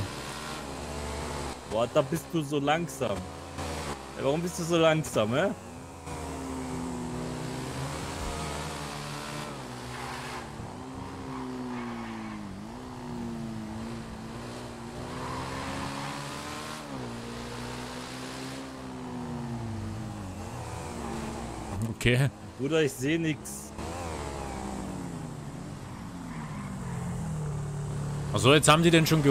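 A motorbike engine hums and revs up and down steadily.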